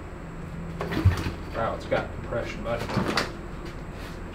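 A motorbike's kick starter clunks as it is stomped several times.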